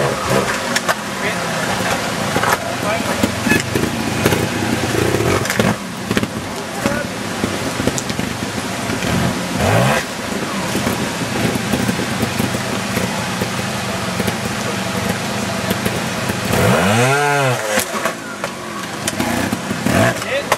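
Motorcycle tyres scrabble and thump over rock and dirt.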